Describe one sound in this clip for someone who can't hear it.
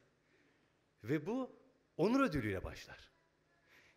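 A man speaks through a microphone in a large echoing hall, with pauses.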